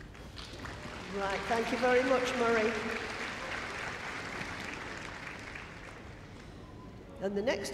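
A large crowd cheers and applauds in an echoing hall.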